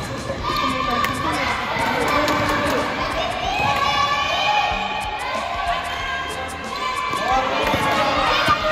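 Young children shout and call out in a large echoing hall.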